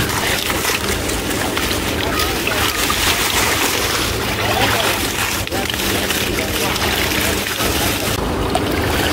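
Leafy plants rustle and tear as they are pulled from water.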